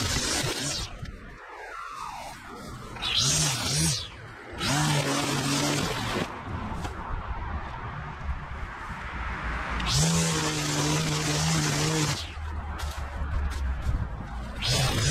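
A string trimmer whirs and revs up and down while cutting grass.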